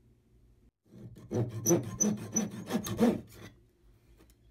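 A small hand saw cuts through wood in quick strokes.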